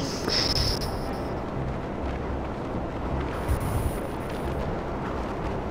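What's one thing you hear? A jetpack engine roars steadily.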